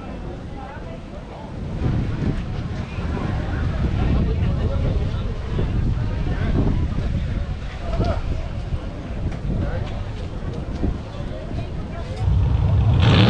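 Off-road race vehicle engines rumble and idle nearby.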